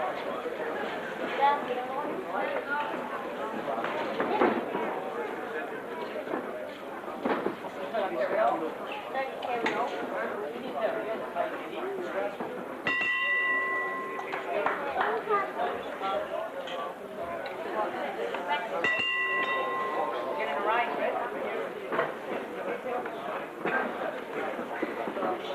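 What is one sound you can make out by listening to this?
A crowd of men and women chatters and shouts in a large echoing hall.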